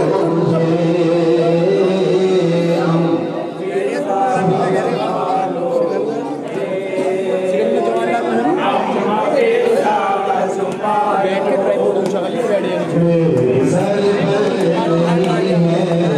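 A man chants loudly into a microphone, heard through a loudspeaker.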